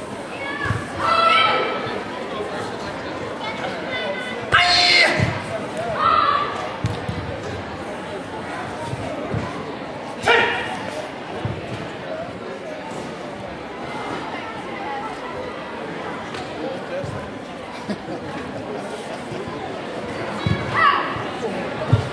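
A boy shouts sharply in a large echoing hall.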